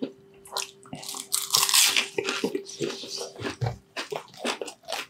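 Crispy fried food crackles as a man's hands tear it apart.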